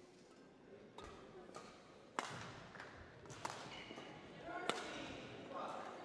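Rackets strike a shuttlecock with sharp smacks in an echoing hall.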